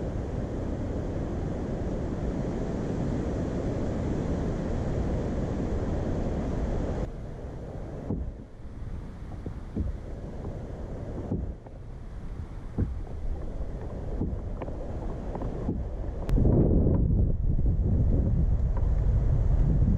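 Water laps softly against a kayak's hull.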